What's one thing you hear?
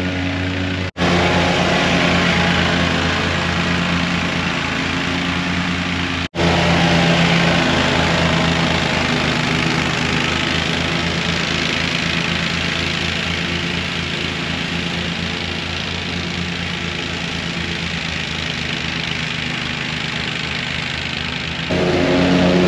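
A riding lawn mower engine drones steadily close by.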